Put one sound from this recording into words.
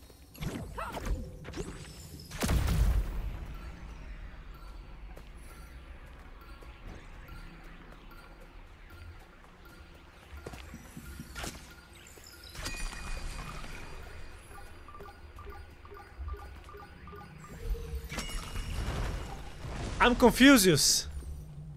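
Magical whooshes and chimes ring out.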